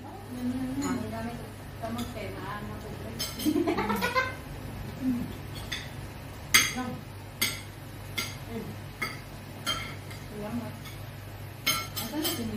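Young women chat and laugh at close range.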